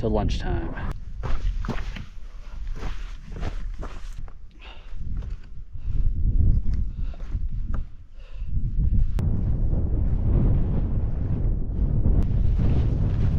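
Footsteps crunch on loose rocks.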